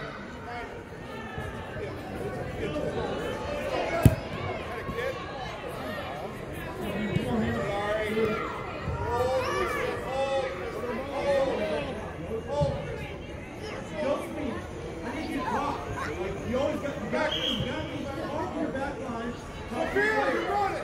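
Many voices of spectators and young players chatter and call out in a large echoing hall.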